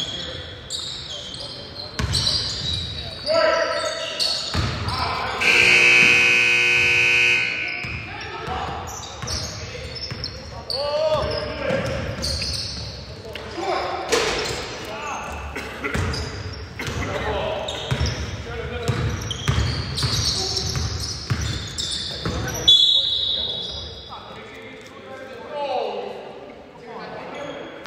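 A basketball bounces on a hard floor, echoing in a large hall.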